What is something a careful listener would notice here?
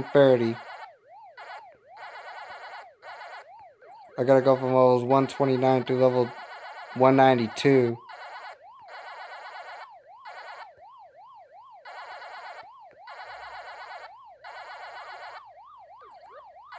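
A video game siren warbles up and down steadily.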